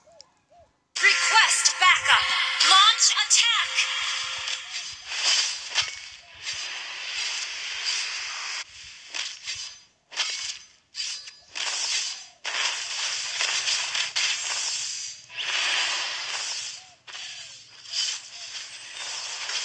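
Spells and blows crash and whoosh in quick bursts during a game fight.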